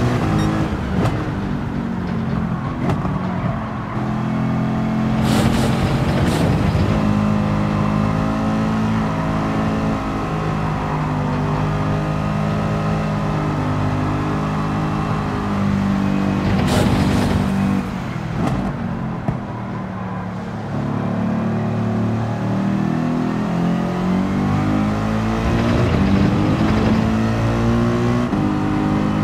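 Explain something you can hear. A racing car engine roars steadily, its pitch rising and falling as it shifts gears.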